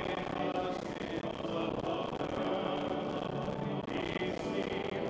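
A man chants in a steady singing voice through a microphone, echoing in a large room.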